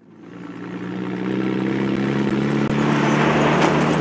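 A vehicle engine rumbles as it drives over rough ground.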